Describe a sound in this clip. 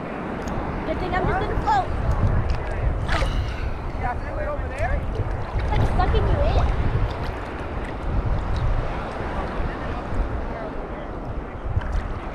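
Small waves slosh and lap close by.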